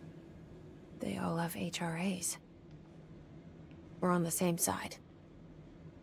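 A young woman speaks in a low, calm voice close by.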